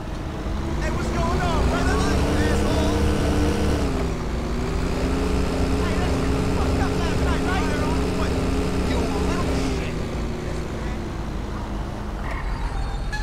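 A bus engine drones as it drives, rising and falling in pitch.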